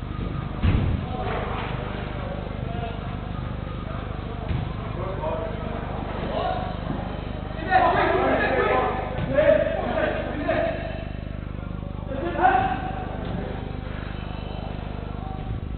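Young men shout and call out to each other across a large echoing hall.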